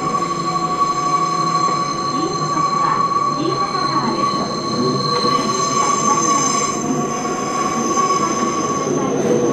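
A train's motor whines with a steady high hum.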